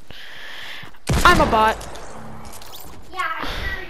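A shotgun blasts once in a video game.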